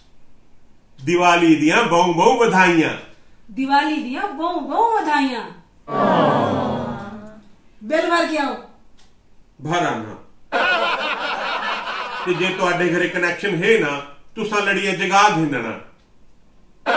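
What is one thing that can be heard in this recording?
A middle-aged man speaks with animation close by.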